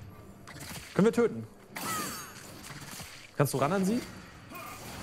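A young man speaks with animation close to a headset microphone.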